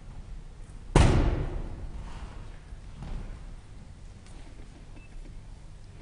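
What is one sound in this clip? A piano chord rings out and slowly fades in the hall.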